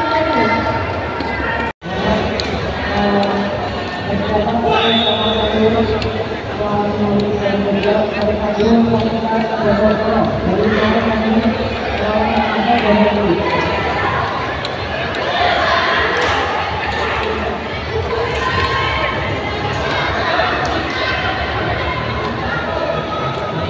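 A large crowd chatters and murmurs in an echoing open hall.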